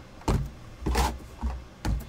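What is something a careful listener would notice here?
A knife slits through packing tape.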